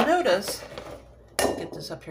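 A metal baking tray scrapes and clatters on a counter.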